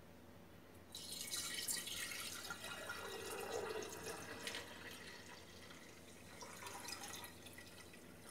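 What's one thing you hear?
Liquid pours steadily through a strainer into a jar.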